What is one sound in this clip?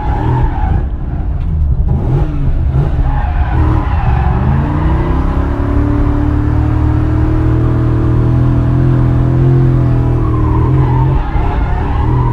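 Tyres rumble low on the road.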